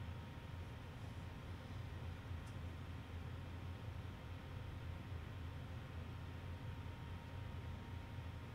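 A computer terminal hums steadily and low.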